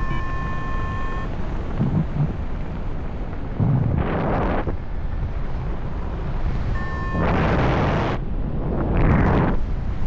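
A small aircraft engine drones steadily.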